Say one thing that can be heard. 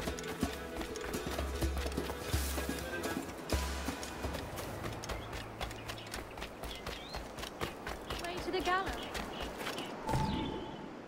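Footsteps run quickly over grass and dirt.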